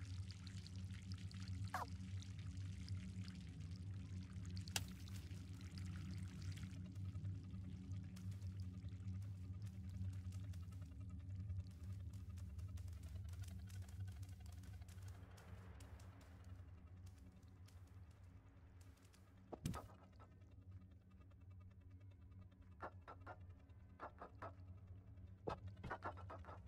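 A cat's paws patter softly on a hard floor.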